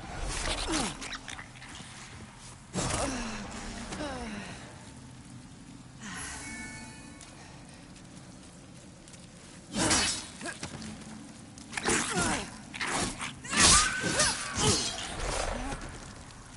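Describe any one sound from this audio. Blades swing and strike in a fight.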